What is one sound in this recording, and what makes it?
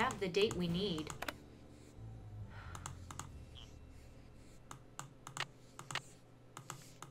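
A safe dial clicks as it turns.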